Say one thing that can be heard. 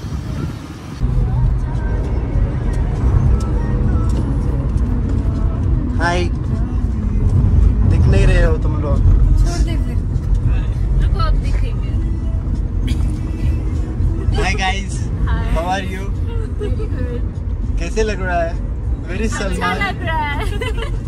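A car engine hums with a low rumble from inside the car.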